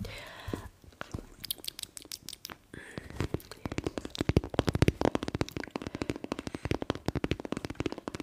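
A squishy toy is squeezed and crinkled close to a microphone.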